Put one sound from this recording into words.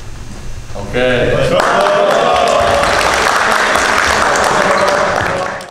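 A group of young men clap and cheer.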